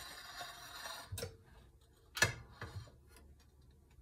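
An oven door drops open with a clunk.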